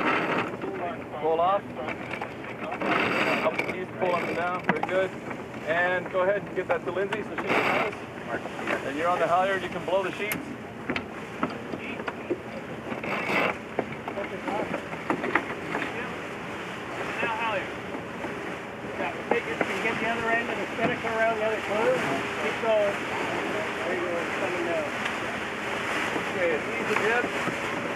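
Men talk and call out to each other close by.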